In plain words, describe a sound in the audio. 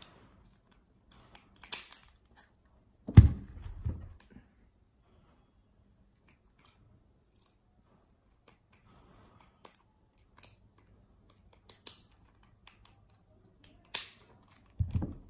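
Metal padlocks clink and click as they are handled.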